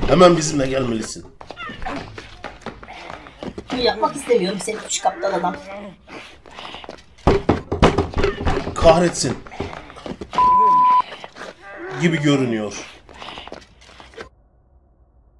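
Men shout and argue close by.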